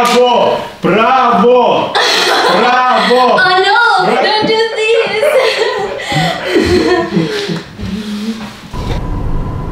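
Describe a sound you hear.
A young woman screams and shrieks loudly in a room.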